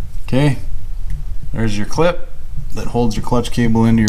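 A hand unplugs a small electrical connector with a plastic click.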